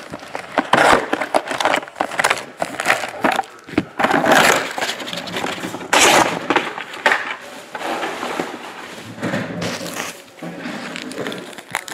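Foil card packs crinkle as they are handled.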